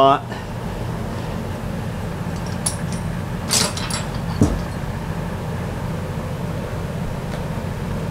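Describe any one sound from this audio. Metal parts clink and knock as they are handled.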